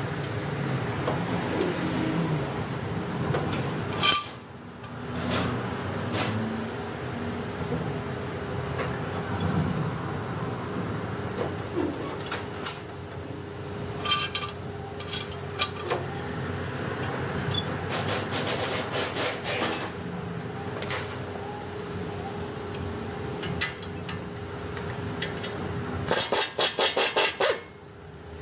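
Metal tools clink and knock against car parts.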